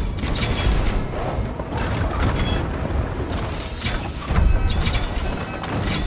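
Siege engines fire and stones crash against stone walls.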